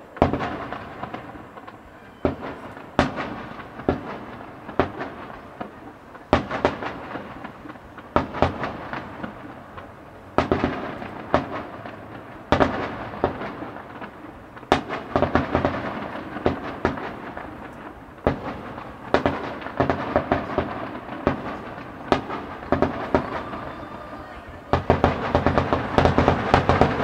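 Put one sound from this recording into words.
Fireworks crackle and sizzle as they burst.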